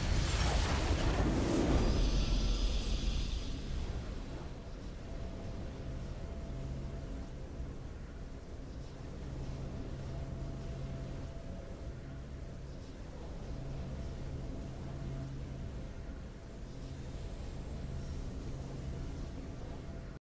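A triumphant game fanfare swells loudly, then settles into calm, steady music.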